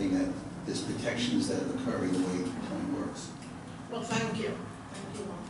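An elderly woman speaks calmly into a microphone in a room with some echo.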